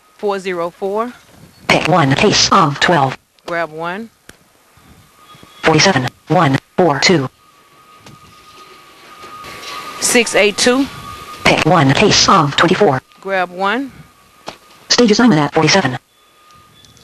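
A woman speaks in short phrases close to a headset microphone.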